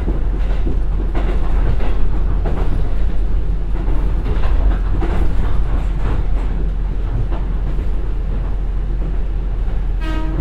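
Train wheels clatter rhythmically on the rails.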